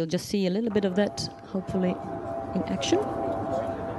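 A woman speaks into a microphone over a loudspeaker in a large echoing hall.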